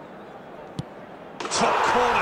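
A ball is struck hard with a single thud.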